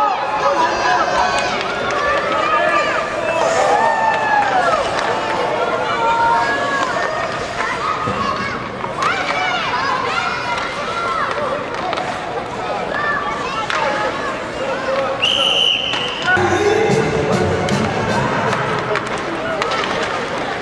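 Children shout and call out in a large echoing rink.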